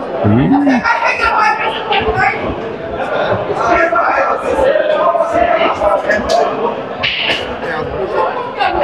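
A crowd of men talks and murmurs all around.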